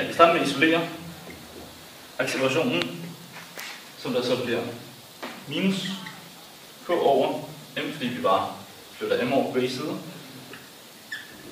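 A young man speaks calmly and close by, in short phrases.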